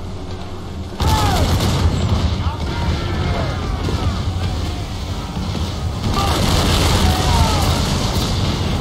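Cannons fire with deep, heavy booms.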